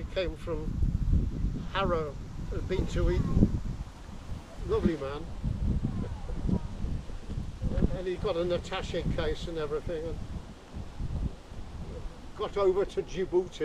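An elderly man speaks calmly outdoors.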